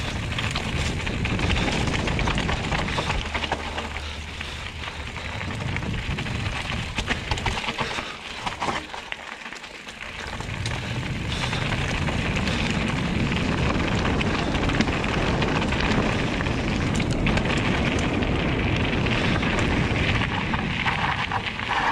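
Bicycle tyres crunch and rumble over a rough dirt trail.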